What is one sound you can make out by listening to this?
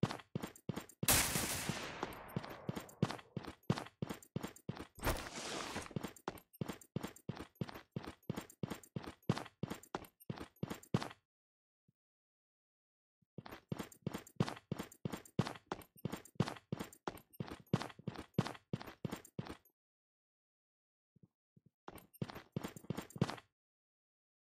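Fast footsteps run across a hard floor.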